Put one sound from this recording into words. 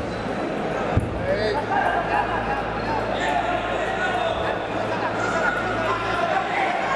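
Spectators cheer and shout louder.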